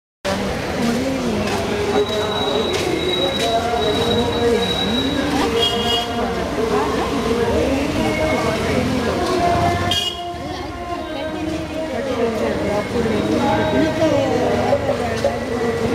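Two men talk at a distance outdoors.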